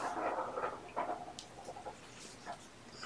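A man talks softly nearby.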